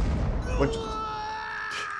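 A hard punch lands with a heavy thud.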